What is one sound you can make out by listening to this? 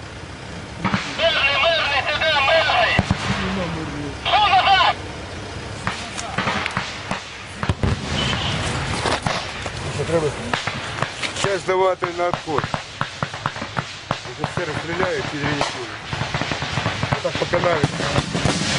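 A man talks tensely close by.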